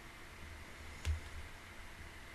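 A microphone is bumped with a dull thump, close up.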